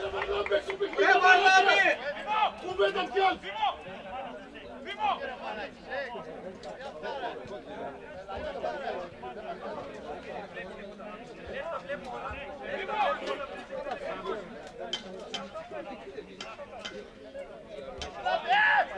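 Several men talk over one another nearby.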